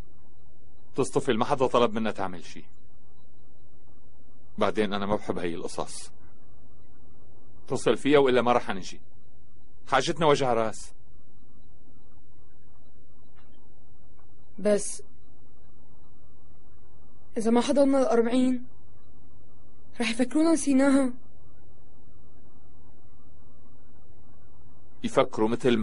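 A middle-aged man speaks calmly and quietly, close by.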